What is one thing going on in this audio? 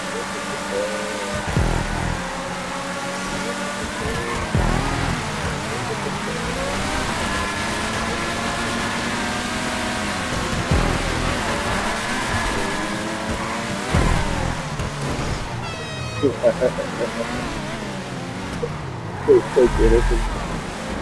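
Racing car engines roar and rev up and down.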